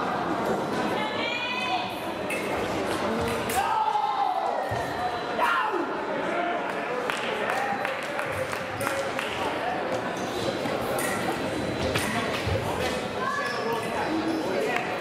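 Shoes squeak sharply on the floor as fencers lunge and step.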